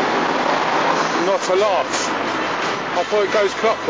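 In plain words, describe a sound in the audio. A young man laughs and talks close by.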